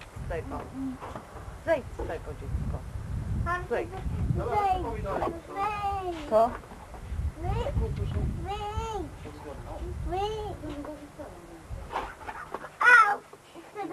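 A young girl chatters and squeals in a high voice.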